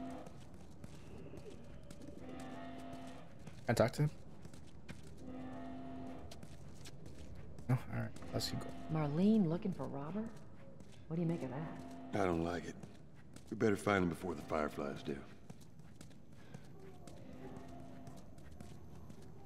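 Footsteps tap steadily on a hard tiled floor.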